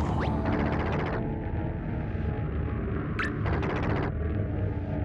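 A monster lets out a loud growling roar.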